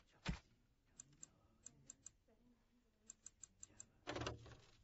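Short game menu clicks tick one after another.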